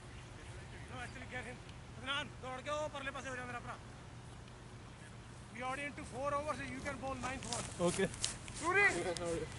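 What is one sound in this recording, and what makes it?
A man talks nearby, outdoors.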